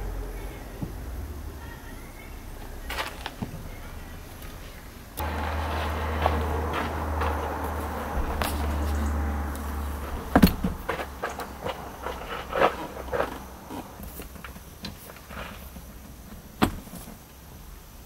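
Plastic parts click and knock as a car seat is taken apart.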